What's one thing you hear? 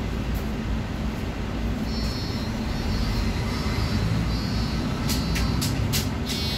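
A bus engine rumbles steadily from inside.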